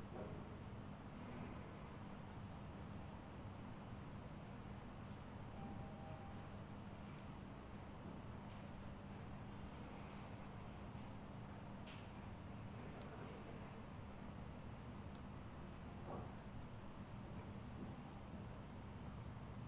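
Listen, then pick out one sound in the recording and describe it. Hands rub and knead bare skin softly.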